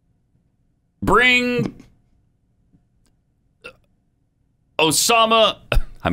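An older man speaks with animation, close to a microphone.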